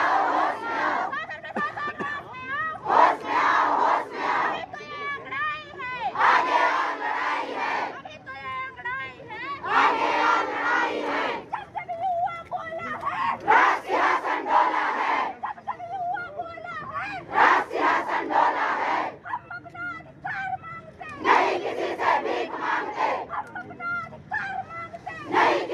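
A woman leads the chant, shouting out lines for the crowd to repeat.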